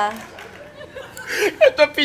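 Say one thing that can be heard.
A woman laughs excitedly.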